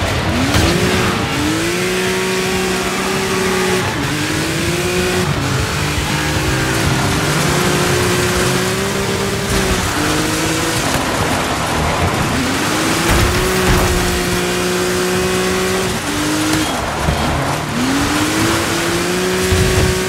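Tyres skid and crunch over dirt.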